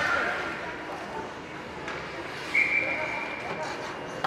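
Skates scrape on ice.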